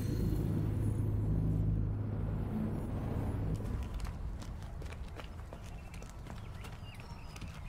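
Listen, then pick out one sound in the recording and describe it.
Footsteps walk on hard pavement.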